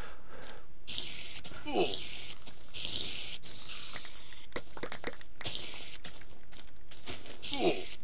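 A giant spider creature hisses.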